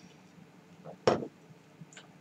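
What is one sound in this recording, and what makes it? A glass is set down on a table with a knock.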